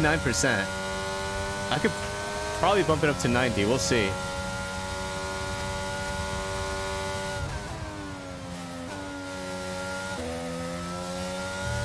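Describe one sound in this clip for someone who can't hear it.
A racing car engine whines at high revs, dropping in pitch with each gear change.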